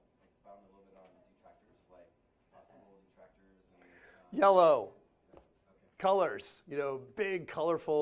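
A man speaks calmly to an audience, his voice growing louder and more animated.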